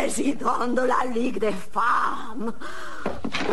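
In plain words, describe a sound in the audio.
An elderly woman cries out in pain close by.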